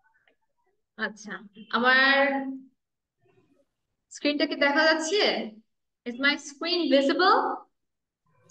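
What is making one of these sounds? A young woman speaks clearly over an online call, reading out in a lively, sing-song way.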